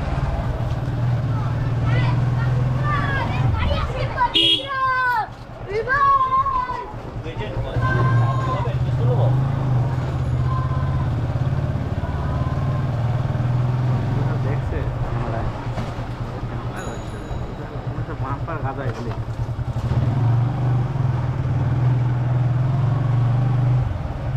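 A motorcycle engine hums steadily at low revs.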